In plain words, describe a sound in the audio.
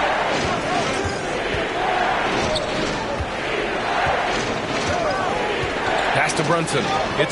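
A large crowd murmurs and cheers in a big arena.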